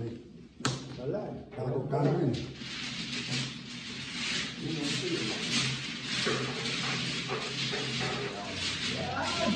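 Mahjong tiles clack and slide against each other on a table.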